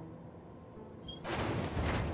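A short electronic beep sounds.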